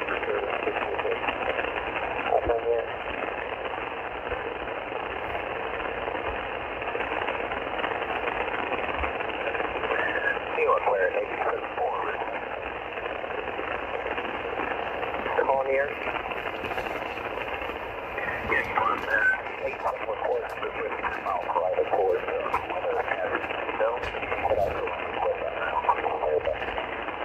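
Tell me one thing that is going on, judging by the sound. A radio receiver hisses with steady static through its small loudspeaker.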